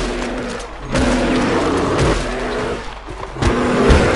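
A bear roars close by.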